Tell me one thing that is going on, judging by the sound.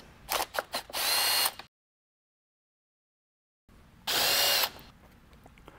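A cordless power drill whirs in short bursts.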